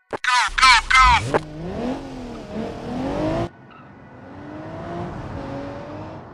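A car engine revs.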